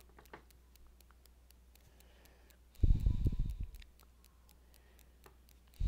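A crochet hook and yarn rustle softly as hands work close by.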